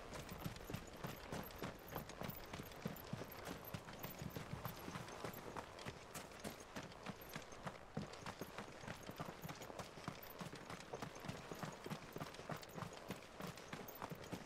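Footsteps crunch quickly over dirt and gravel.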